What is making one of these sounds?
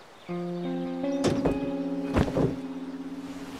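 A car door opens and slams shut.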